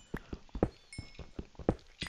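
A pickaxe chips at stone with quick, dry knocks.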